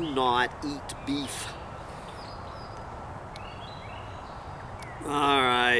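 An elderly man speaks calmly outdoors, close by.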